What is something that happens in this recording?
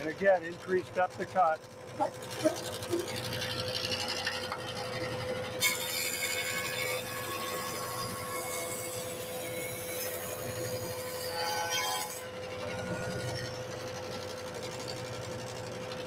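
A jointer machine hums steadily.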